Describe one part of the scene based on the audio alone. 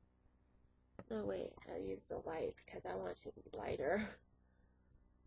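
A young woman speaks close to the microphone.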